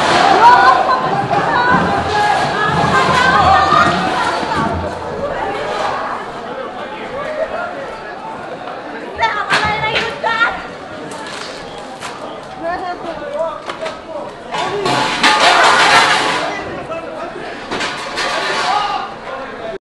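A crowd of men shout and talk over one another nearby.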